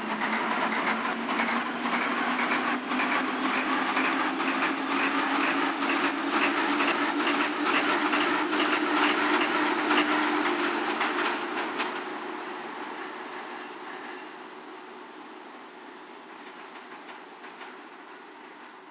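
A train motor hums with a slowly rising pitch.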